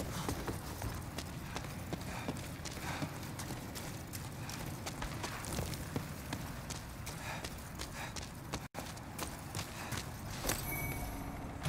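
Heavy armoured footsteps thud and clink on stone and wooden boards.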